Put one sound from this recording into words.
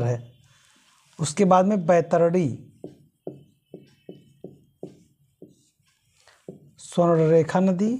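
A man speaks calmly and clearly, explaining as a teacher would.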